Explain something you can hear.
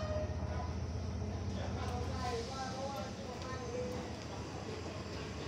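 Train wheels squeal faintly on the rails.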